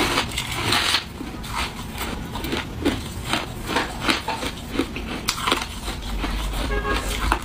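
A woman chews ice with repeated crisp crunches close up.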